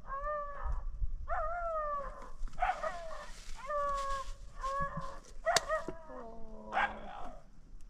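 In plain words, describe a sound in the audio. A plastic bag rustles close by.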